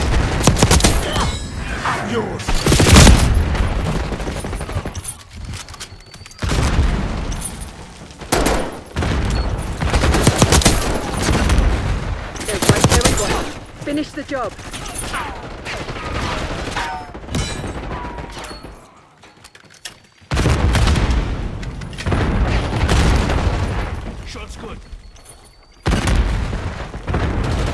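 Gunfire rattles in loud, sharp bursts.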